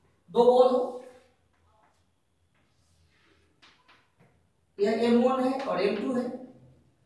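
A man speaks calmly, pausing between phrases.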